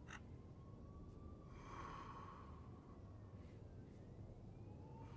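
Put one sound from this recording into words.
An elderly man breathes heavily through an open mouth.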